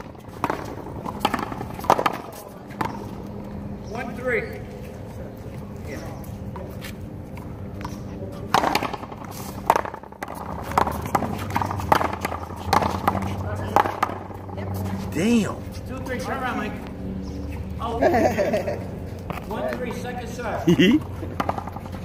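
Sneakers scuff and squeak on a hard court.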